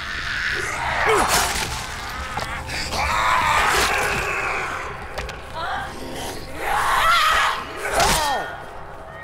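A blade slashes into flesh with wet thuds.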